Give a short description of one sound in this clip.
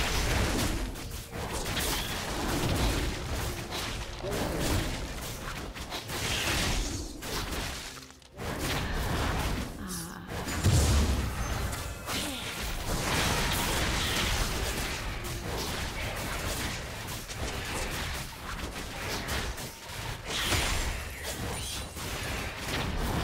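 Video game combat effects clash, whoosh and crackle.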